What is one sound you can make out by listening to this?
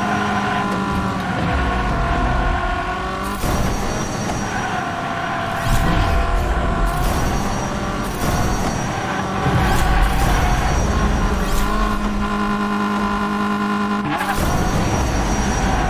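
Racing car engines roar and whine steadily.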